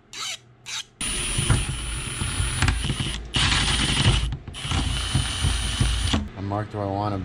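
An electric drill whirs as it bores through metal.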